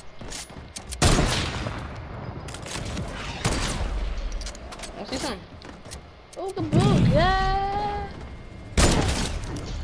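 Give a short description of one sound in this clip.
Gunshots bang in quick bursts.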